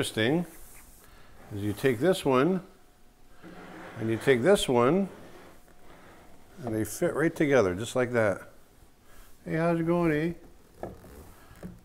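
A heavy figurine slides and scrapes softly on a wooden table.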